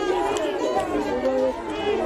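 A crowd of protesters chants outdoors.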